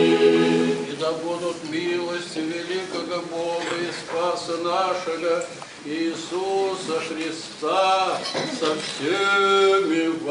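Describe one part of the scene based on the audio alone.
An elderly man chants in a deep voice nearby.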